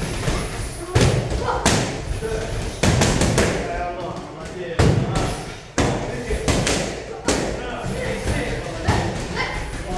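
Fists and feet thump against heavy punching bags.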